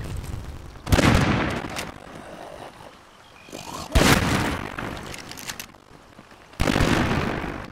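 A pistol fires loud single shots.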